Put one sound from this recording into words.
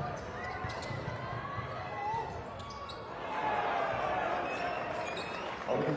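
A large crowd cheers and murmurs in an echoing arena.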